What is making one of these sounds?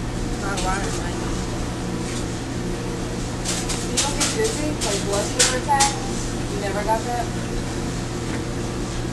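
A spoon scrapes the inside of a cup.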